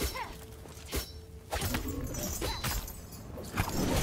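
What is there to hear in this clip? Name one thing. A sword slashes and clangs against a creature.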